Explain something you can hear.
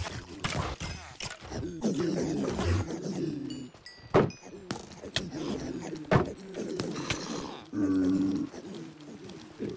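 Creatures in a game groan and grunt in a crowd.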